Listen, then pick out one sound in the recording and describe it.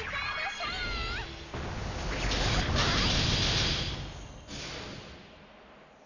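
Magic blasts and explosions crash loudly in a fast battle.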